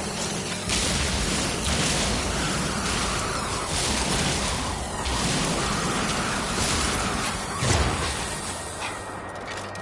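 A mining laser buzzes and hisses in long bursts.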